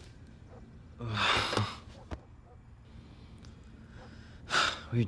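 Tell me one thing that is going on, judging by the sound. A young man sighs heavily close by.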